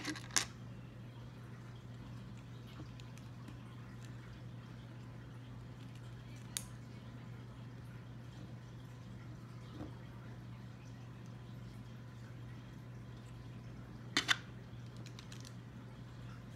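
Small plastic toy pieces click and snap together.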